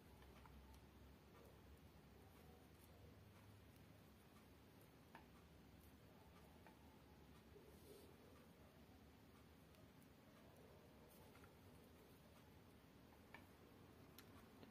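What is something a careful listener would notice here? Fingers handle a small object close by with faint clicks and rustles.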